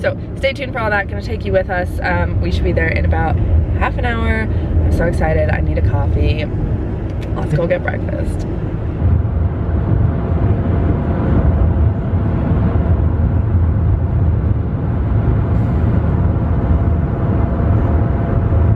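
A car's engine and tyres rumble steadily on a road.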